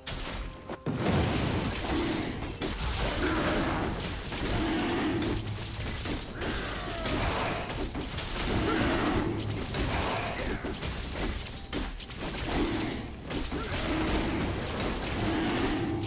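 Video game combat effects of blows and spells clash and whoosh.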